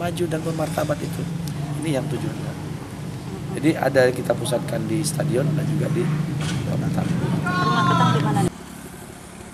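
A middle-aged man speaks calmly into handheld recorders close by.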